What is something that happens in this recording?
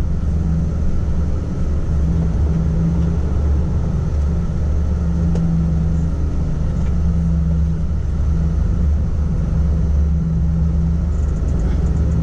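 Tyres roll on the road beneath a truck.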